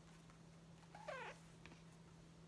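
A young woman gives a short, soft hum close to a microphone.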